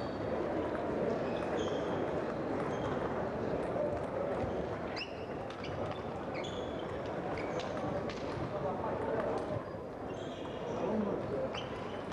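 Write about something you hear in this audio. A ping-pong ball clicks back and forth across a table.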